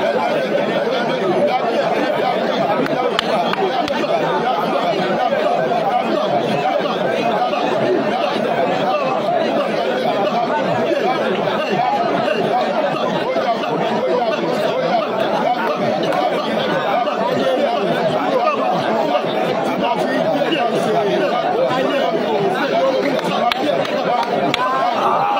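A man speaks steadily and earnestly close to the microphone.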